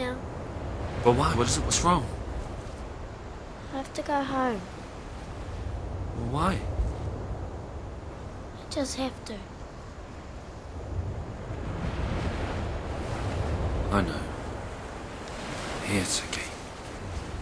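A man speaks quietly and earnestly, close by.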